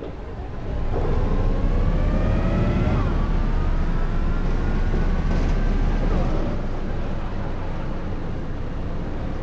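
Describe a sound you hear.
A bus engine hums and rises in pitch as the bus speeds up, shifting gears along the way.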